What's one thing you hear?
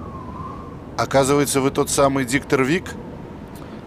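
A middle-aged man speaks firmly up close.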